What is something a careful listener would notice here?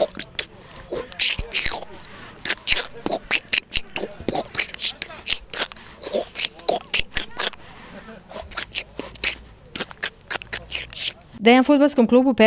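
A middle-aged man speaks close to a microphone with animation.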